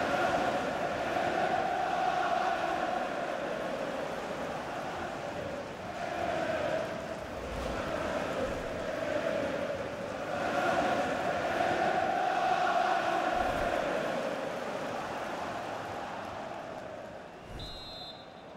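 A large stadium crowd cheers and chants loudly.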